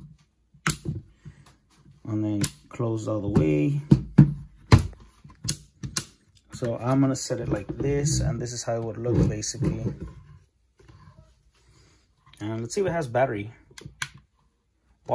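A plastic lamp knocks and clicks as it is handled on a hard surface.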